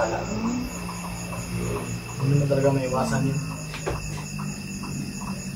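Men talk and laugh casually close by.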